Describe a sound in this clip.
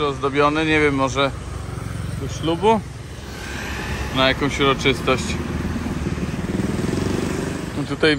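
Traffic hums along a nearby street.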